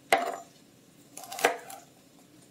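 A knife chops on a plastic cutting board.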